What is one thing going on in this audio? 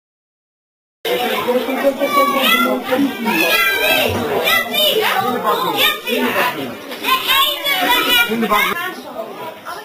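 Many young children chatter and call out loudly close by.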